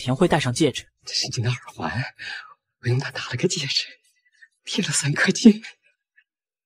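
A man talks warmly close by.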